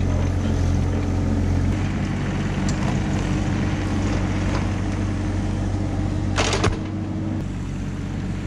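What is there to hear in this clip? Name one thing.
A small excavator engine rumbles steadily nearby.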